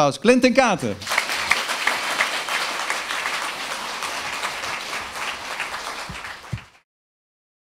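An audience applauds and cheers in a large room.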